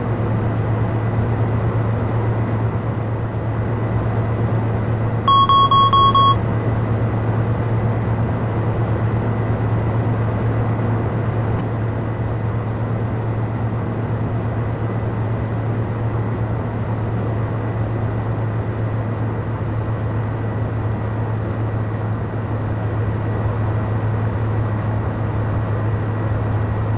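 A single-engine turboprop drones in flight, heard from inside the cabin.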